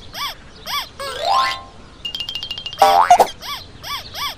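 A rubbery stretching sound boings and wobbles.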